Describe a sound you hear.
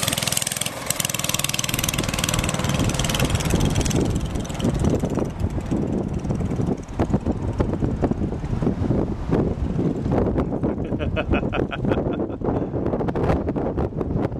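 A small go-kart engine buzzes and revs outdoors.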